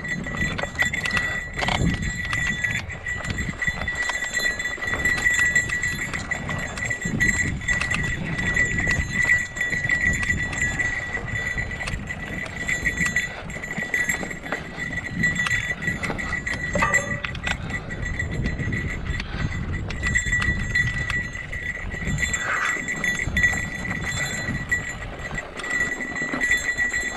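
Bicycle tyres rumble and crunch over a rocky dirt trail.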